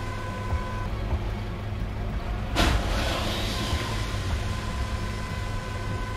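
A vehicle engine idles with a low rumble.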